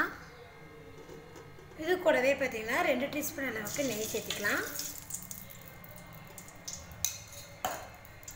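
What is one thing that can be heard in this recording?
Oil sizzles faintly in a pot.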